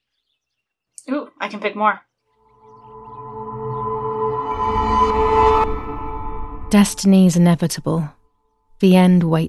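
A young woman talks casually, close to a microphone.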